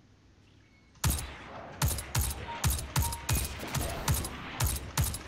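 A rifle fires repeated sharp shots.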